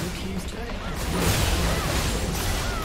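A tower collapses with a loud blast.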